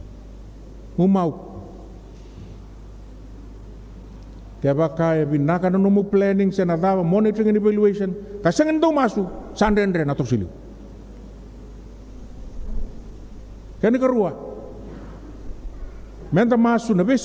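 A middle-aged man preaches with animation into a microphone, in bursts with pauses.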